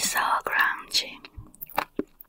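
A young woman whispers close to a microphone.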